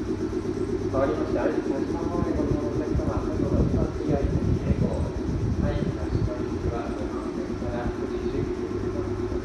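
A train's wheels clatter over rail joints as it rolls slowly along.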